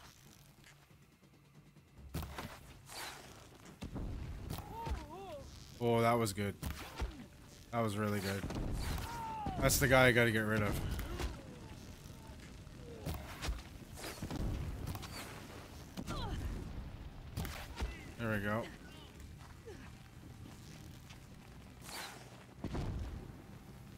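A bowstring twangs as arrows fly.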